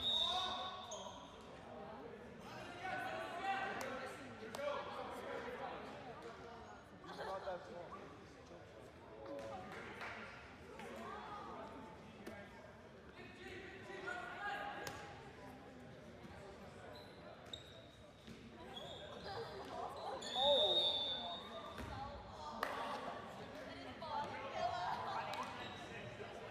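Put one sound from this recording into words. A ball thuds against a hard floor and wall.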